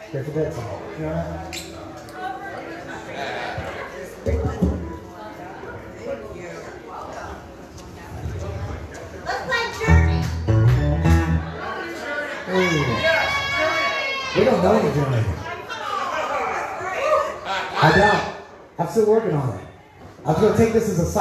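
An elderly man sings into a microphone through a loudspeaker.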